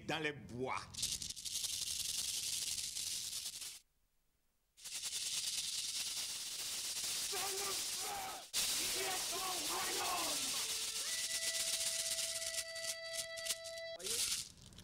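A beaded gourd rattle shakes in a rapid hiss.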